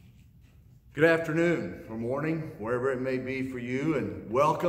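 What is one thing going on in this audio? A middle-aged man speaks clearly and with animation, close to a microphone.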